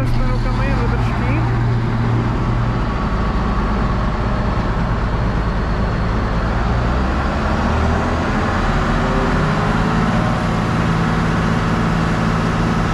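A heavy diesel engine rumbles loudly and steadily close by.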